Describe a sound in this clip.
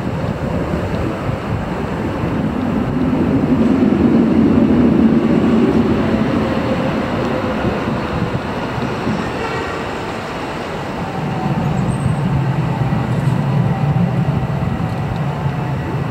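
City traffic hums steadily in the street below.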